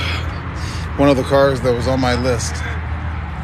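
A young person talks nearby.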